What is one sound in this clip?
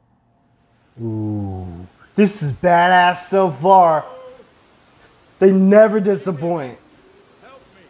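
A young man speaks with animation into a microphone, calling out and asking questions.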